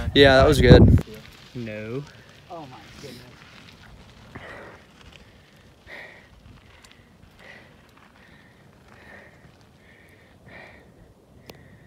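Bicycle tyres roll over a dirt trail.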